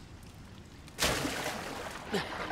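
A body plunges into water with a loud splash.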